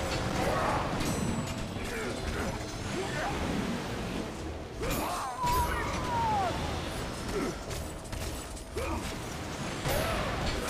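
Blades slash and strike enemies with sharp impacts.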